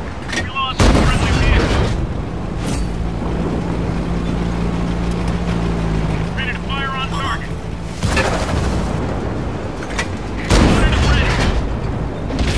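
A heavy tank's main gun fires with a booming blast.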